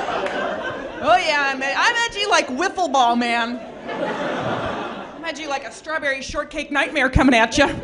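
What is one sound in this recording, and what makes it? A woman speaks animatedly through a microphone.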